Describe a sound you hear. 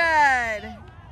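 A foot kicks a soccer ball with a dull thud.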